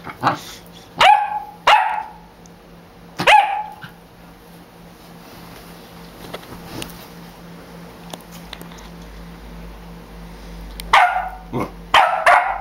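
A small dog barks in short, high yelps close by.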